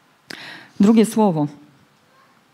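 A woman speaks into a microphone in a large room, her voice carrying through loudspeakers.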